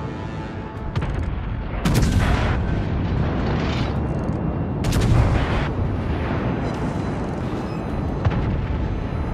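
Shells burst in distant explosions.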